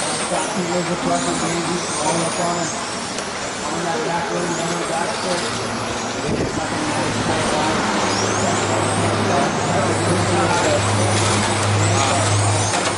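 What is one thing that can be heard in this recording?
Small electric model cars whine at high speed as they race around a track.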